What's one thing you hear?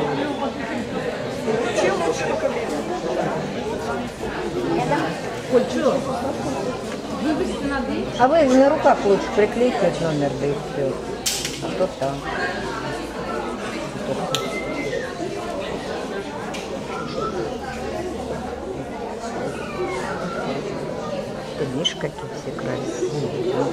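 Men and women chat in the background of a large echoing hall.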